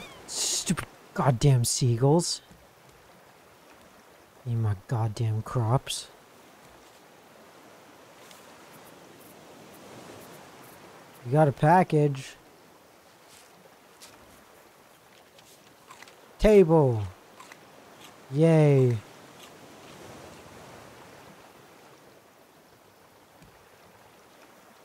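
Sea water laps softly against a raft.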